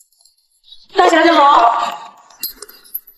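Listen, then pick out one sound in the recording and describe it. A woman greets someone warmly, close by.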